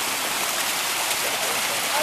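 Water trickles gently in a fountain.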